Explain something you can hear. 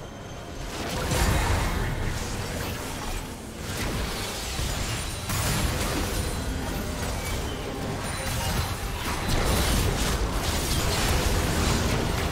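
Spell blasts and hits crackle and boom in a game fight.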